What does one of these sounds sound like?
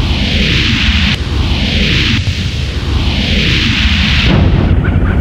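Laser shots in a video game fire again and again, each one a sweeping whoosh.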